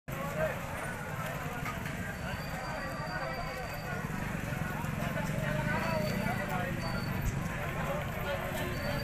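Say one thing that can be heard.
A crowd of men chatters loudly outdoors.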